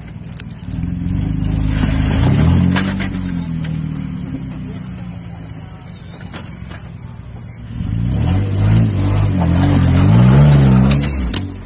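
Tyres crunch and scrape over rocks and dirt.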